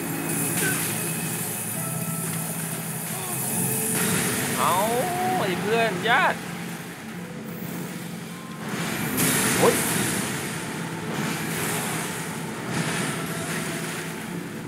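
Magic blasts crackle and roar with a bright shimmering hiss.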